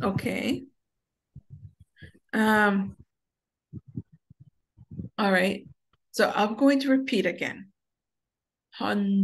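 A woman speaks clearly and slowly, as if teaching, heard through an online call.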